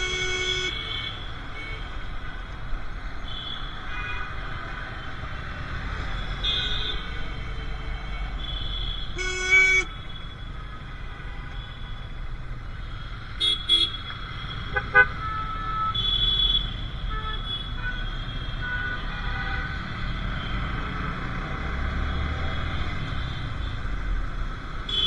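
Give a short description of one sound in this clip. Traffic hums steadily all around.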